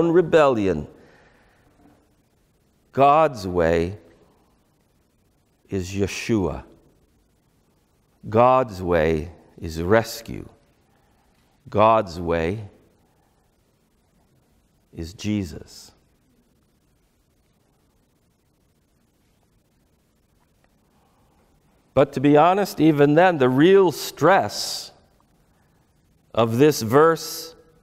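A middle-aged man speaks calmly into a close microphone, in short phrases with pauses.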